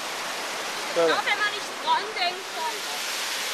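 A young woman talks briefly close by.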